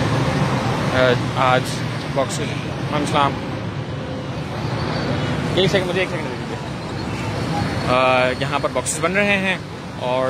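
A man speaks nearby in short phrases.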